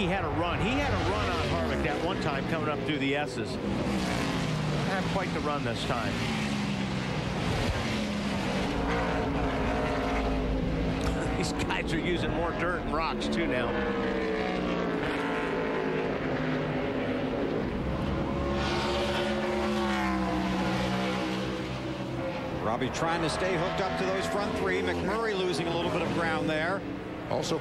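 Car engines whine up and down in pitch as the cars brake and accelerate.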